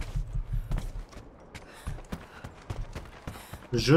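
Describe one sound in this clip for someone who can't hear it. Footsteps thud quickly on wooden boards.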